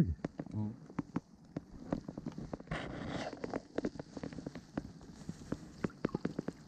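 Water gurgles and ticks softly, heard from underwater.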